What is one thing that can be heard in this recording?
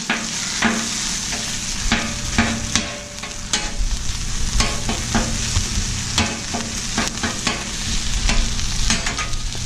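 Meat sizzles steadily on a hot griddle.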